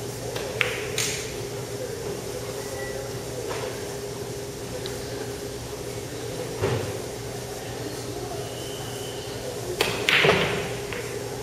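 Billiard balls clack against each other on the table.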